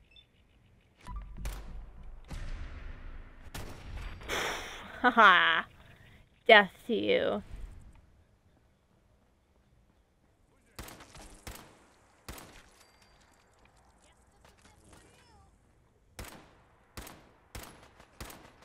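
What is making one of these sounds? A gun fires a series of loud shots.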